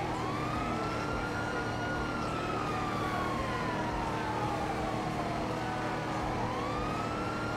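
Tyres roll on a road with a low, steady rumble.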